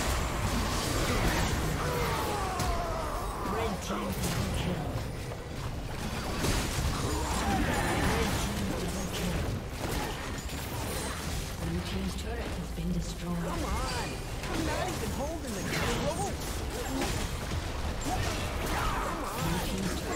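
Magic blasts and hits crackle and boom in a fast, busy fight.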